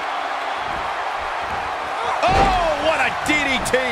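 A body slams down hard onto a wrestling mat.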